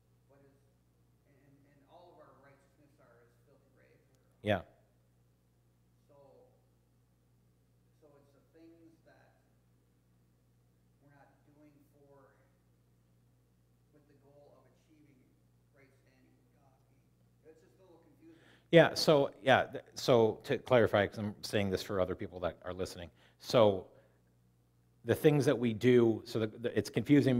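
A man speaks steadily into a microphone in a room with some echo, quietly at first and then much louder.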